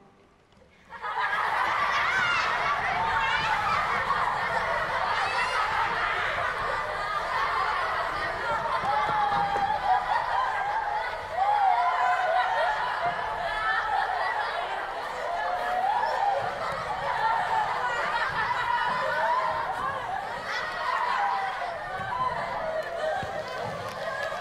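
A crowd of children shout and chatter excitedly.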